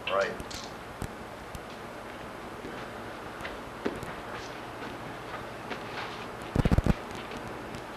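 Footsteps thud softly on a padded mat.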